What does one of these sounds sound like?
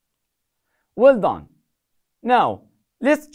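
A young man speaks calmly and clearly, close to a microphone.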